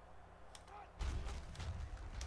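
Players' pads thud and clash as a football play starts.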